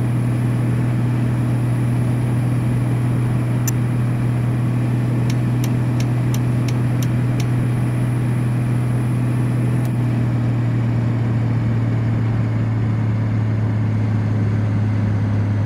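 A truck engine hums steadily at speed.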